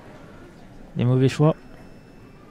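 A man calls out loudly in a large echoing hall.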